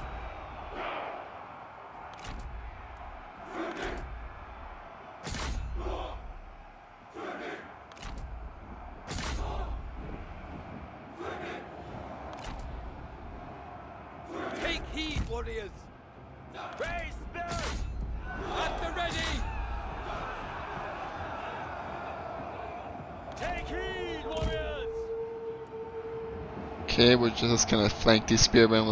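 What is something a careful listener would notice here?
Soldiers clash and shout in a battle at a city wall.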